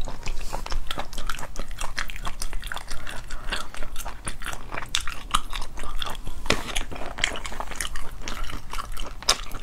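Fingers peel and crack sauce-coated shells close to the microphone.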